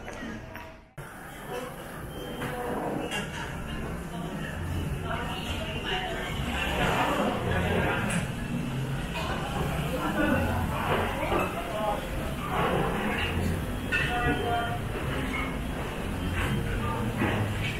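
Men and women chatter in a busy room.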